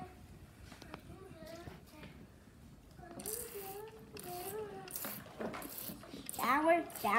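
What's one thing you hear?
Water splashes in a small tub.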